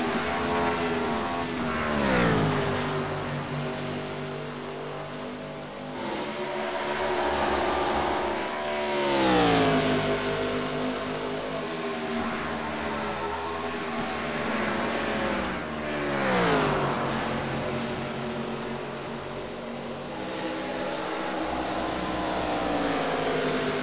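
Race car engines roar steadily at high speed.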